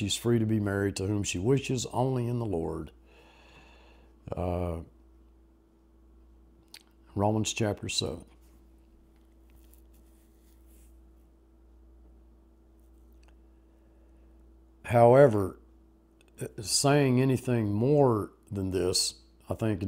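An elderly man speaks calmly and thoughtfully into a nearby microphone, pausing at length.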